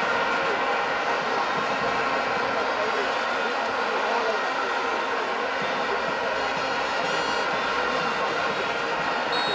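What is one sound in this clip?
A large stadium crowd cheers and chants loudly throughout.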